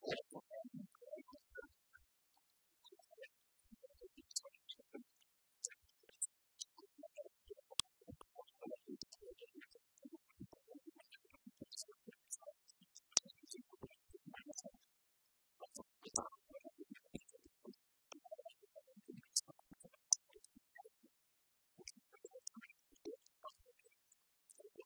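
Keys click on laptops.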